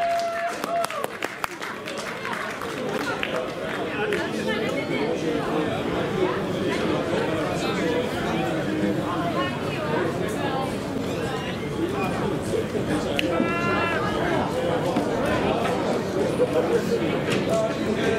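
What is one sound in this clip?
Young men cheer, shout and chatter in celebration outdoors.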